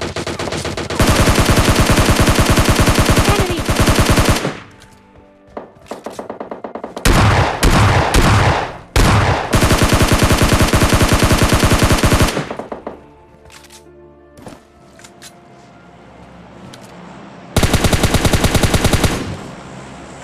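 Rapid automatic gunfire rattles in loud bursts.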